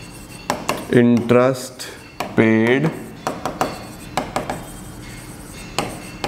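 A marker taps and scratches on a board.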